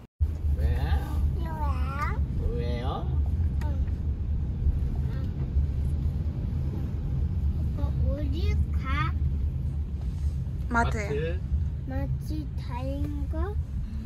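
A toddler babbles and coos nearby.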